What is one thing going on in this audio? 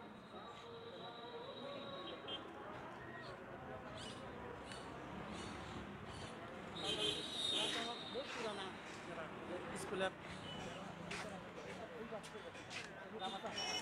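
Spoons clink against plates.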